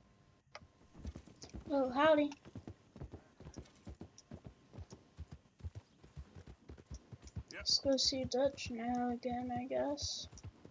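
A horse gallops, its hooves pounding steadily on a dirt track.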